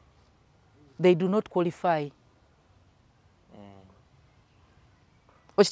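A woman speaks calmly and with animation, close to a microphone.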